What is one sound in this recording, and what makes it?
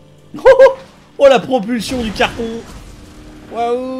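A car crashes with loud metal bangs.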